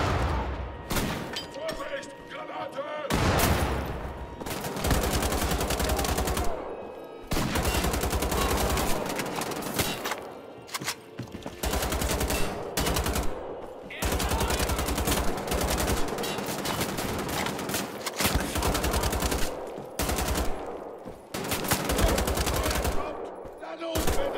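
Rapid automatic gunfire rattles in repeated bursts, echoing.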